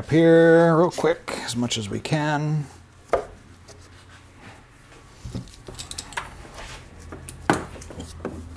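Metal parts click and clatter as hands work on an engine.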